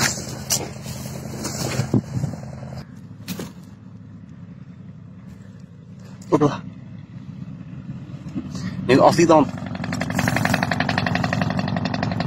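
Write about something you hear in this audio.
Dry grass and twigs rustle and crackle as someone crawls.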